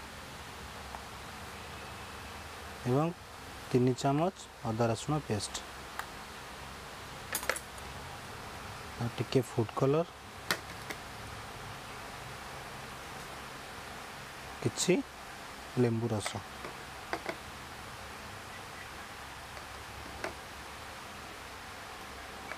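A metal spoon clinks against a steel bowl.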